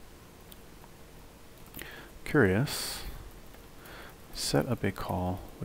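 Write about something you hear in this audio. Keys clack softly on a keyboard.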